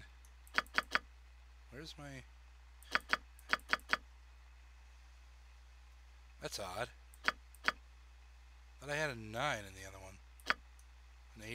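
Sharp interface clicks sound as buttons are pressed.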